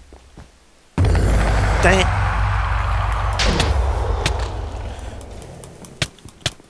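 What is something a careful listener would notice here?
A fireball explodes with a loud, rumbling blast that slowly fades.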